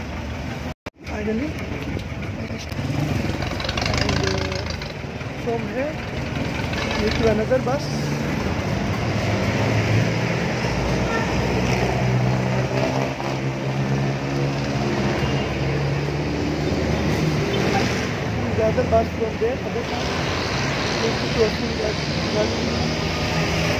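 A man talks up close to the microphone outdoors in street traffic.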